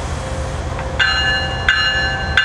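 A locomotive horn blares loudly.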